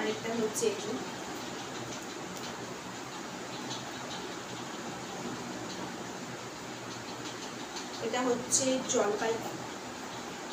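A woman speaks close by, calmly.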